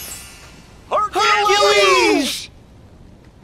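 A squawky cartoonish voice calls out loudly.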